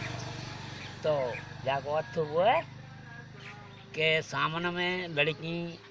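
An elderly man speaks with animation close by.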